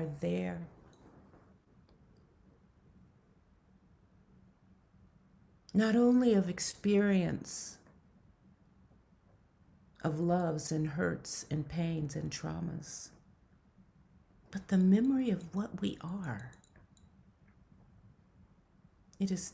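A middle-aged woman speaks calmly in short bursts over an online call.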